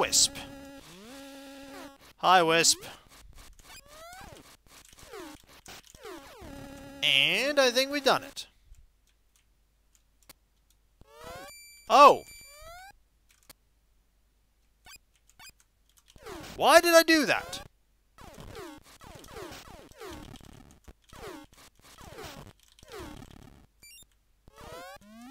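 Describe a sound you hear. Electronic video game beeps and chirps sound in short bursts.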